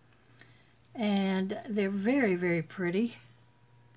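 Small shell earrings clink softly against each other in a hand.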